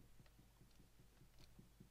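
Dull wooden knocks repeat quickly, like a block being punched.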